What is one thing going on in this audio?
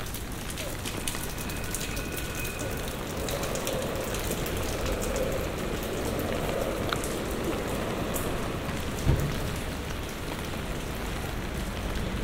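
Light rain patters on wet pavement outdoors.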